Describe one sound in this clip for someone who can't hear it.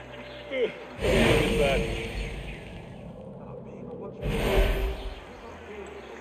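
A heavy whoosh rushes past twice.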